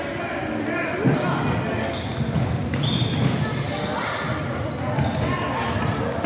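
A basketball is dribbled on a hardwood floor.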